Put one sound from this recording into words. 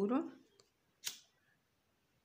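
A lighter clicks once.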